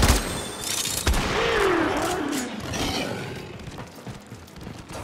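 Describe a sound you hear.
Metal clangs and sparks crackle as blows strike.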